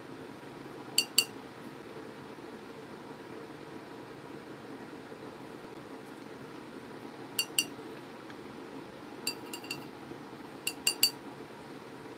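A brush clicks against a paint palette a few times.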